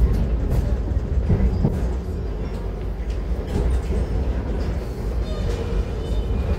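A train carriage rumbles steadily along the tracks.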